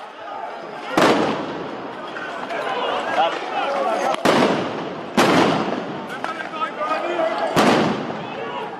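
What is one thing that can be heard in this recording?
Loud blasts bang and echo off walls.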